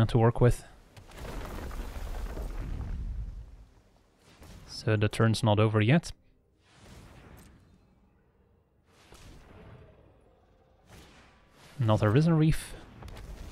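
A magical whooshing sound effect swells and fades.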